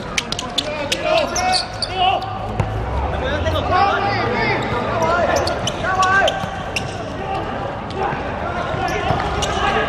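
Sneakers squeak sharply on a hard court.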